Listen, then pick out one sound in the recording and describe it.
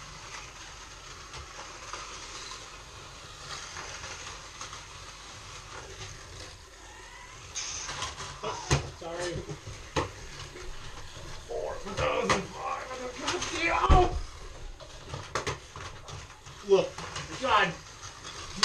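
Small toy racing cars whir around a track.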